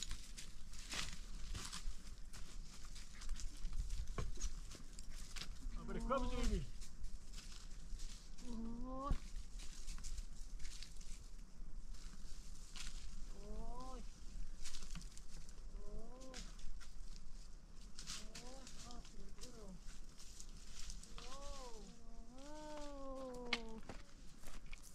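Footsteps crunch and scrape over loose stones.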